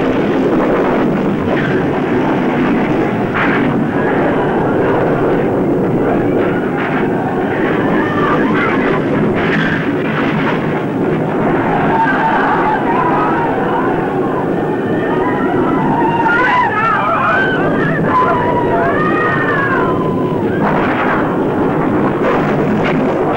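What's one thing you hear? A large crowd of men shouts and cheers loudly.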